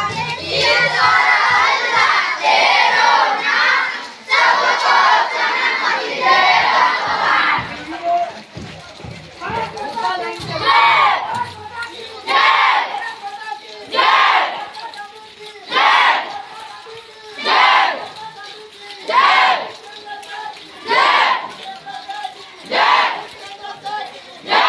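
A group of children chant loudly in unison, in regular rhythmic bursts.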